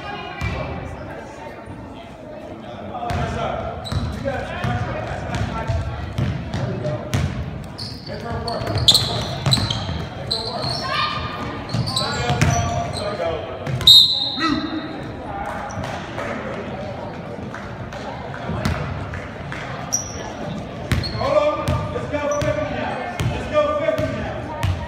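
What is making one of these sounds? Spectators shout and cheer loudly.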